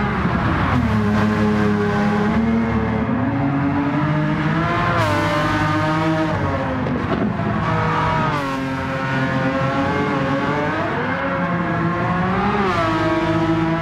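A racing car engine roars loudly, revving up and down through the gears.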